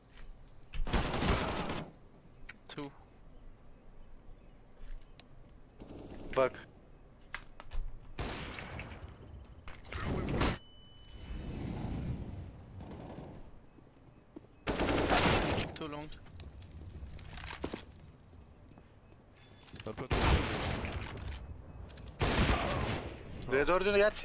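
Gunshots crack loudly in bursts.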